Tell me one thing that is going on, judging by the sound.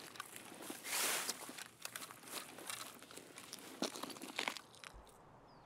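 Footsteps rustle through tall grass and crunch on gravel.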